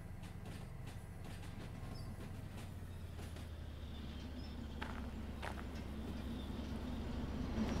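A railway freight car rolls closer along the track with a low rumble, growing louder.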